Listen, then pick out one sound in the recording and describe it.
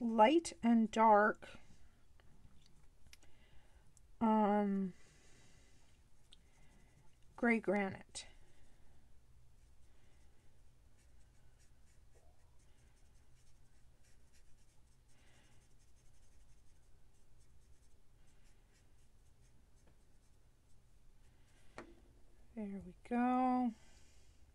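A felt-tip marker rubs and squeaks faintly on paper.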